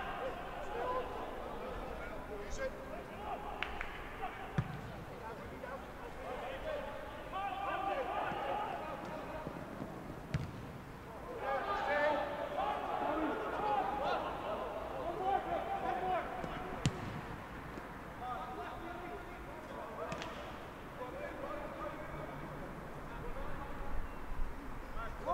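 Men shout and call out across an open outdoor field.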